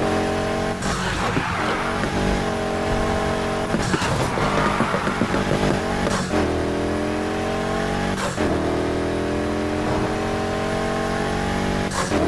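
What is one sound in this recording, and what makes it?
A car engine roars steadily and shifts gears as it speeds up.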